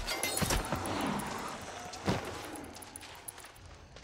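Footsteps run over sand.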